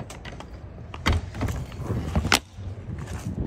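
A metal trailer door swings shut with a clank.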